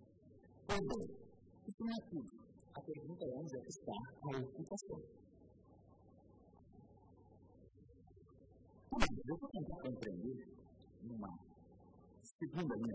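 A middle-aged man speaks formally into a microphone, with pauses.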